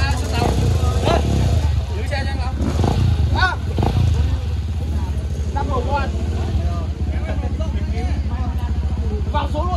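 A man talks nearby over the engine.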